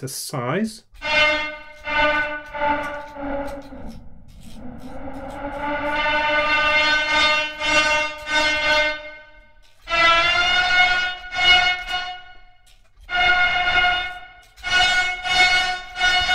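An electronic instrument plays bright, buzzy notes that swell and fade.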